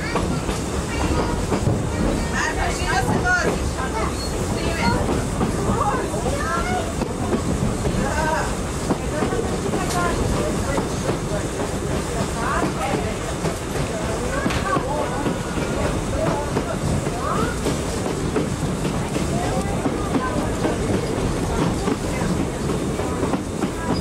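Adult passengers chatter nearby.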